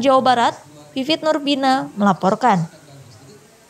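A woman speaks with animation, heard through an online call.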